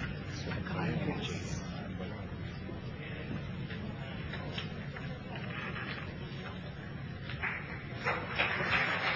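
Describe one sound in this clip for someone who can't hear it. A man speaks through a loudspeaker in a large hall.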